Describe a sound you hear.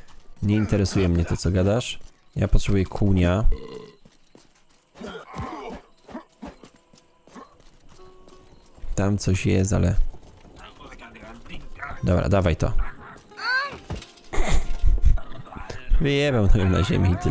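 A young man talks with animation close to a microphone, in bursts with pauses.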